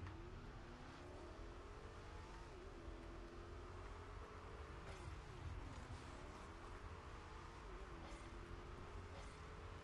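A game car's engine hums and revs, rising and falling in pitch.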